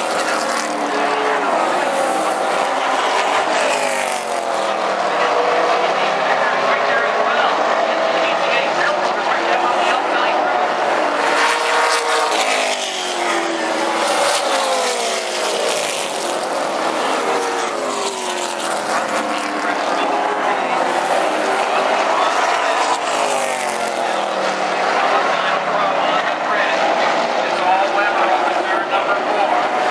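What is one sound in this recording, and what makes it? Race car engines roar loudly as they speed past, rising and falling in pitch.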